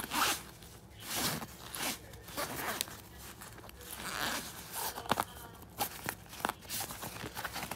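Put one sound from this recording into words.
A zipper is pulled open and shut on a fabric bag.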